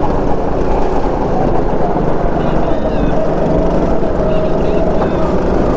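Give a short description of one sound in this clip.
A go-kart engine buzzes loudly and steadily close by.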